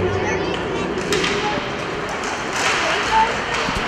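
Hockey sticks clack against the puck and each other.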